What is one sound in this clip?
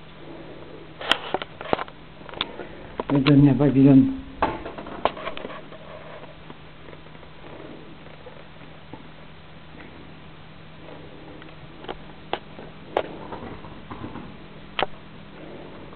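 Claws click and tap on a hard floor.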